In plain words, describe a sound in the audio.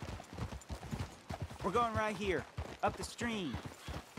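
Horse hooves clop on rocky ground.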